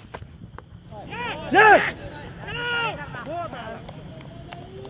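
Men shout loudly outdoors.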